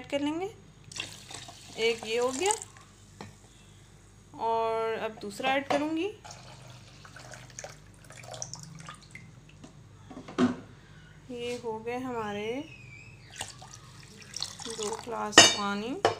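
Water pours into a plastic jug of liquid.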